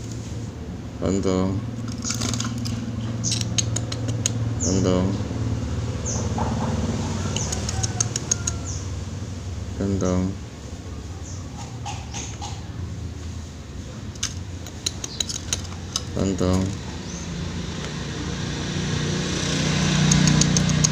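A small bird chirps and trills close by.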